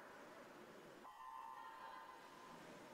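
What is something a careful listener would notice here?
Swimmers dive into the pool with a splash.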